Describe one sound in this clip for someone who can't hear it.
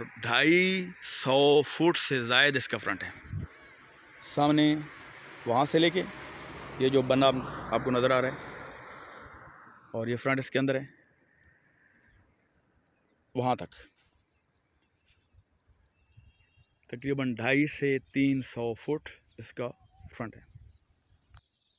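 A man speaks calmly close by, pausing now and then.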